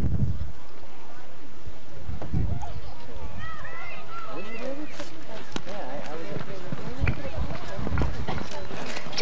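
A horse gallops, its hooves thudding on soft dirt.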